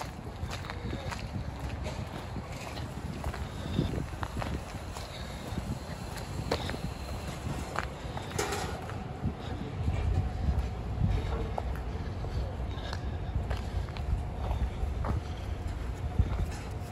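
Footsteps crunch on wet snow and slush.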